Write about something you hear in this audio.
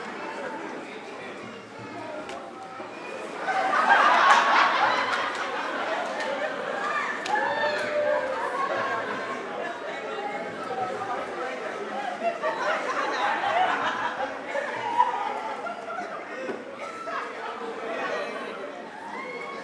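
Several men and women speak and exclaim loudly on a stage, heard through a microphone in a reverberant hall.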